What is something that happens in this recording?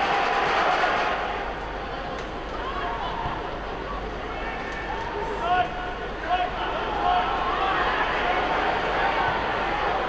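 A stadium crowd murmurs and chants more quietly.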